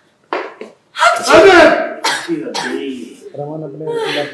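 A woman exclaims in distress.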